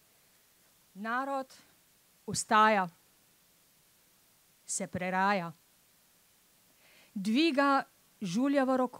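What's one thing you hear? A woman recites slowly and expressively through a microphone outdoors.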